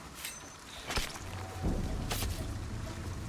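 Bodies thud in a short scuffle.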